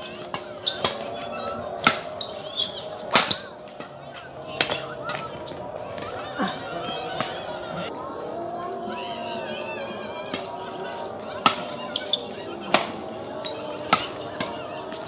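Shoes squeak and shuffle on a hard court.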